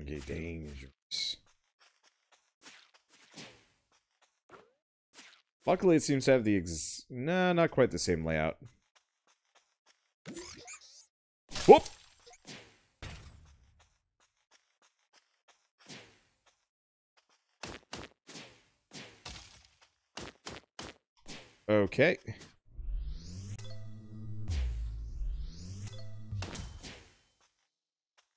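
Sword swings swish and strike.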